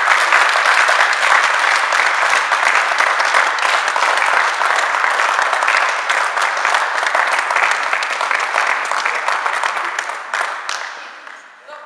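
A crowd claps and cheers loudly in an echoing hall.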